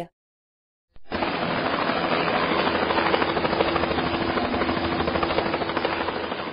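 Helicopter rotors whir.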